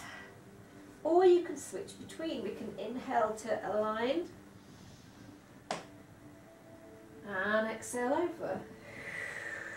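A woman speaks calmly nearby, giving gentle instructions.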